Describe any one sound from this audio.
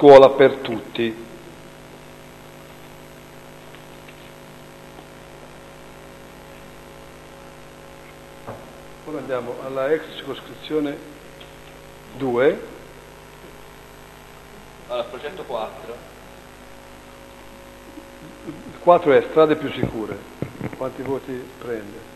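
An elderly man speaks through a microphone, pausing often.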